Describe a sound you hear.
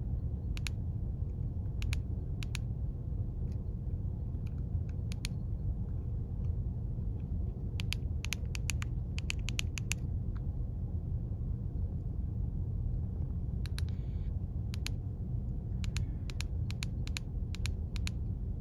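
Short electronic beeps sound from a handheld radio as its buttons are pressed.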